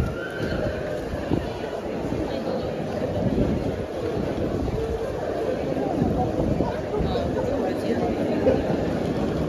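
Footsteps shuffle on a paved floor.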